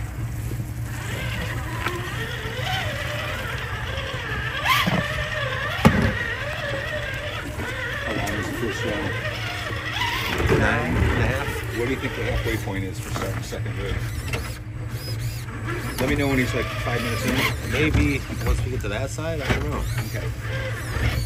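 A small electric motor whines, rising and falling as a toy truck crawls.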